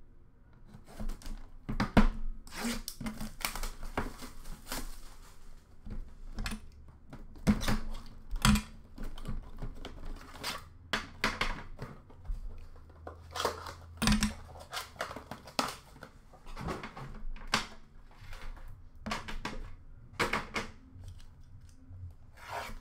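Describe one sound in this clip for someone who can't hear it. Cardboard boxes knock and scrape on a glass counter.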